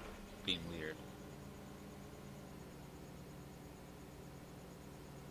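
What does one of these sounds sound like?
A tractor engine idles with a low, steady hum.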